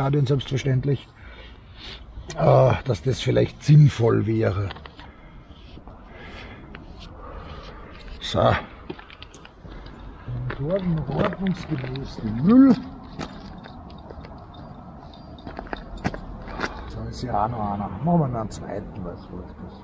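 A middle-aged man talks calmly close by.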